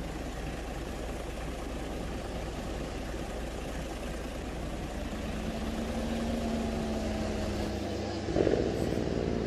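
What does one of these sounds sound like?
A bus engine hums steadily and rises in pitch as the bus turns.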